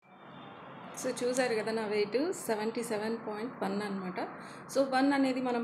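A woman talks with animation, close to a microphone.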